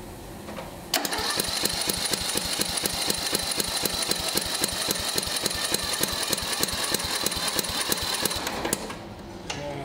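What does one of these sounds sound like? A small engine starts, runs with a fast, steady chugging and then stops.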